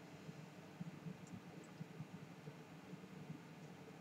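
A glass is set down on a table with a soft knock.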